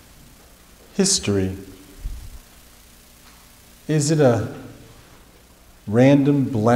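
A man speaks through a microphone in a large echoing hall, in short bursts.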